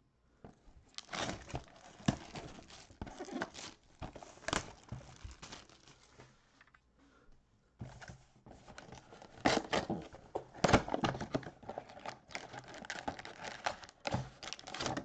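Plastic wrap crinkles and rustles as a box is handled.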